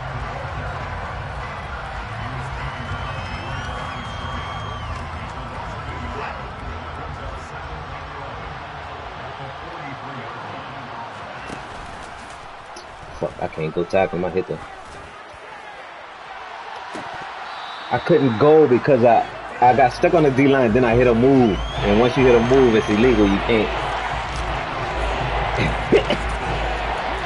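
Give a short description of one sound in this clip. A stadium crowd roars steadily in a large echoing arena.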